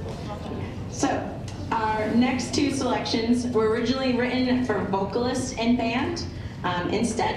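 A young woman speaks calmly into a microphone over a loudspeaker in a large hall.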